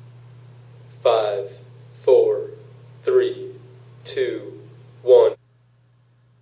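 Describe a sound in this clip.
A man's recorded voice plays back in short bursts through a small loudspeaker.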